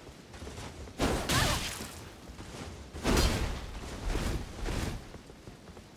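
Swords clash and slash with loud metallic impacts.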